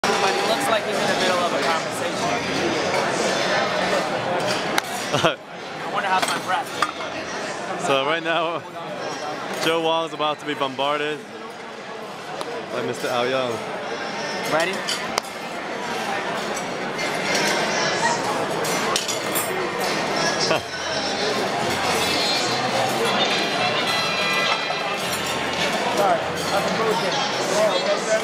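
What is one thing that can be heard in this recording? A crowd of people chatters in a large room.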